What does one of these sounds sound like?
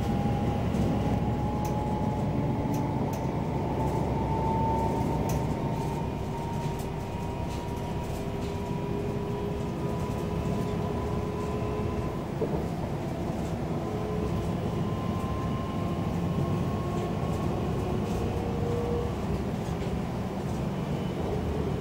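A train rumbles steadily along the tracks from inside a carriage.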